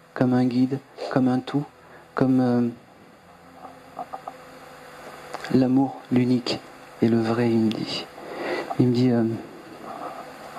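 A man sings in short phrases through a microphone.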